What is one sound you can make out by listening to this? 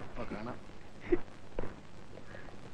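A middle-aged man laughs softly.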